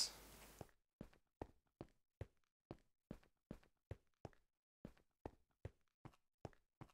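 Blocks are set down with soft, dull thuds in a quick, even rhythm.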